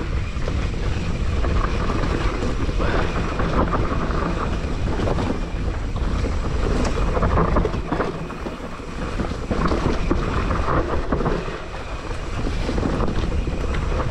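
Bike tyres crunch and rattle over a rough dirt trail.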